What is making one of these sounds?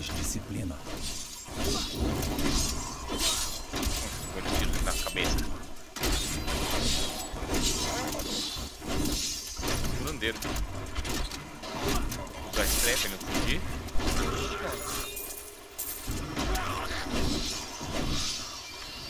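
Game spells crackle and blast in rapid bursts.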